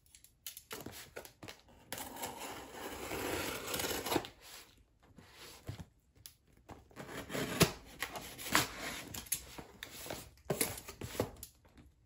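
Scissors slice through packing tape on a cardboard box.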